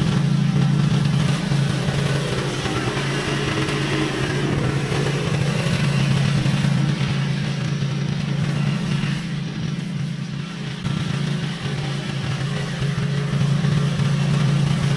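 A mower engine runs steadily with a low hum, close at first and then farther off.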